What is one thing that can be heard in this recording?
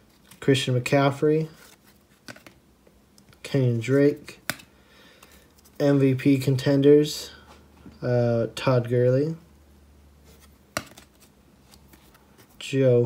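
Trading cards slide and flick against each other in a person's hands.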